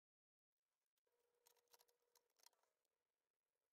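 A metal cover clatters and clicks into place on a plastic casing.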